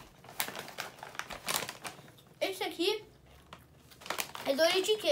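A plastic snack bag crinkles and rustles in a boy's hands.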